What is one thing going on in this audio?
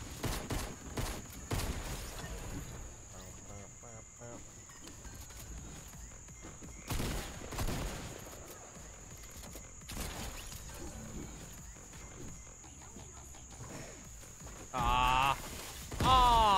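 Gunshots and sharp hits crack in quick bursts.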